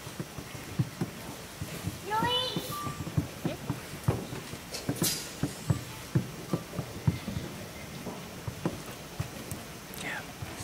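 Instruments knock and clatter as players lift them.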